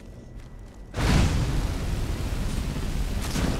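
A spell blasts with a loud, steady roar.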